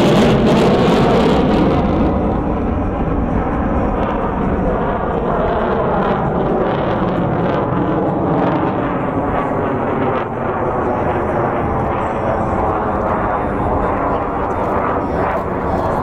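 A jet engine roars loudly overhead, rumbling and slowly fading.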